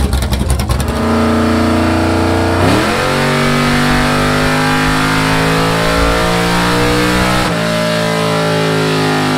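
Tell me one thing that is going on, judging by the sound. A car engine roars at high revs, its pitch climbing.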